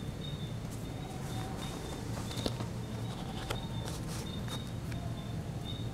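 Paper rustles as a page is handled.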